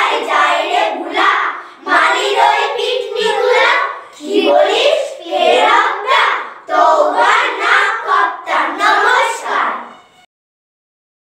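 A choir of young girls sings together in unison, close by.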